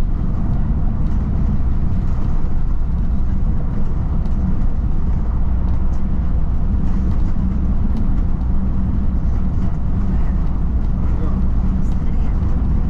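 Tyres roll on smooth pavement with a low rumble.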